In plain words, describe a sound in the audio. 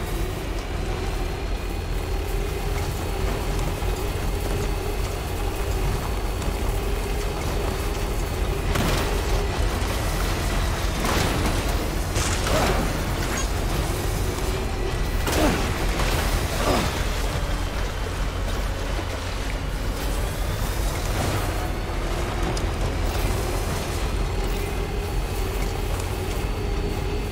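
A vehicle engine hums steadily while driving over rough ground.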